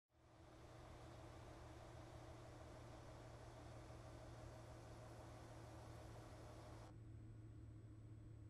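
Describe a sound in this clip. A truck's diesel engine idles with a steady low rumble.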